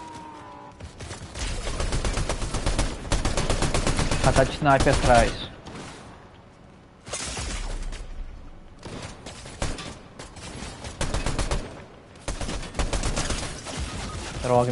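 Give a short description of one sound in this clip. Rapid gunshots crack in quick bursts.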